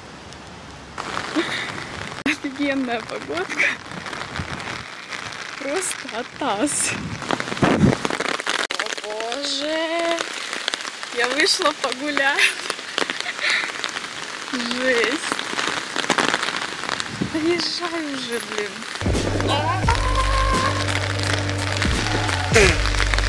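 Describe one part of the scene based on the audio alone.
Rain patters on an umbrella.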